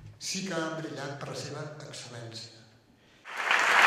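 An elderly man speaks calmly into a microphone in a large hall.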